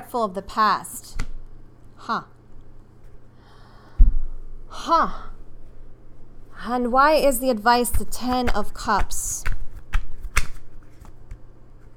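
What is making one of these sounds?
Cards tap and shuffle in a woman's hands.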